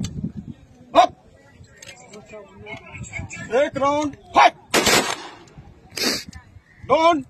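Rifles fire a volley of sharp shots outdoors.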